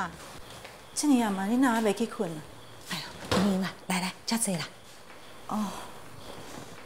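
An older woman answers warmly.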